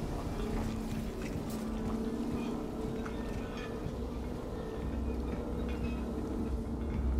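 Machinery hums low and steady.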